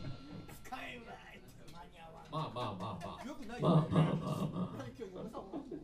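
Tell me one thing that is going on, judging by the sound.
A band plays loudly through amplifiers.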